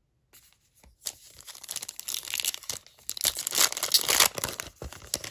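A foil wrapper crinkles and rustles loudly as hands tear it open.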